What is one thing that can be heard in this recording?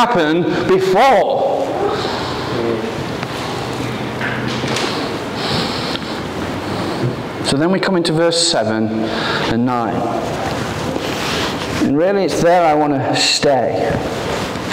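A young man speaks with animation into a microphone in a large echoing hall.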